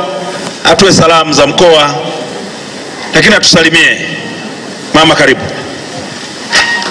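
A man speaks loudly into a microphone in bursts, his voice amplified and slightly echoing.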